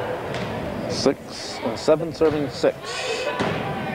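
A volleyball is struck with hard slaps.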